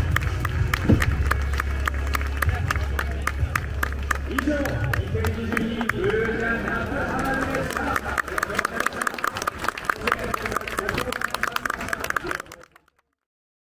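A distant crowd murmurs.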